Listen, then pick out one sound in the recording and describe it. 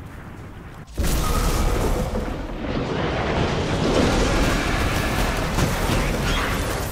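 Weapons fire and energy blasts crackle loudly and without letup.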